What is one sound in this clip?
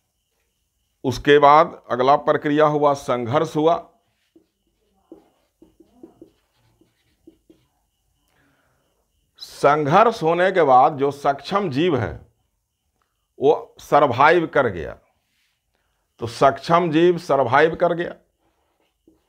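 A middle-aged man lectures calmly into a close microphone, in short bursts with pauses.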